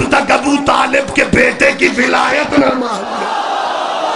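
A man chants loudly through a microphone over loudspeakers.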